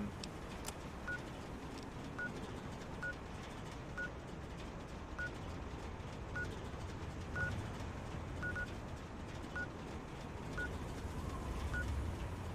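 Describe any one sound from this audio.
Soft electronic ticks sound at a steady pace.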